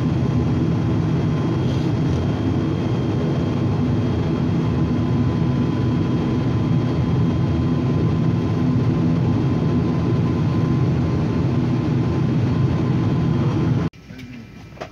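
An aircraft engine hums loudly and steadily close by.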